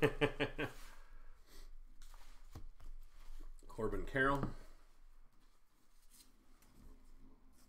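Trading cards shuffle and slide in a man's hands.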